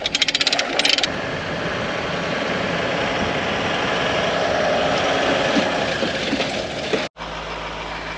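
A car engine rumbles as a vehicle drives slowly.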